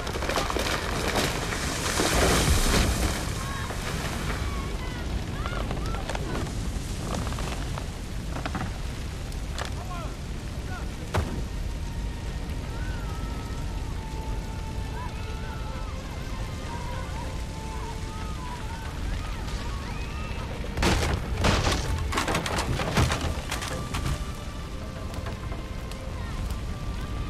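Fire crackles and roars steadily.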